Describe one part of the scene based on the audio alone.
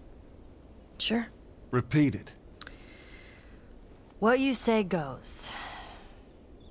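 A girl answers in a young, dry voice.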